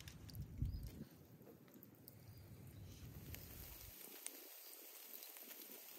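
Meat sizzles over hot coals.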